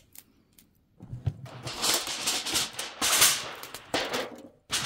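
Aluminium foil rustles and crinkles close by.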